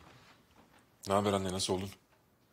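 A man speaks briefly in a low, firm voice.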